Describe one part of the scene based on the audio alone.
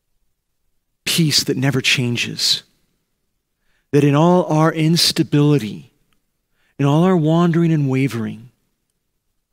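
A middle-aged man speaks expressively through a microphone, in short phrases with pauses.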